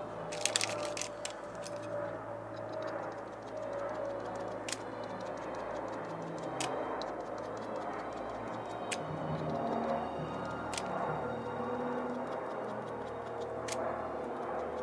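Small objects click and tap against a metal board.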